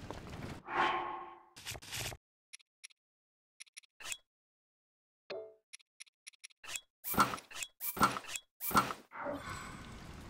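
Short menu blips click as selections change.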